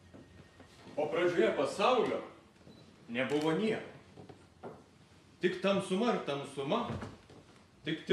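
A man speaks loudly and theatrically in a room with a slight echo.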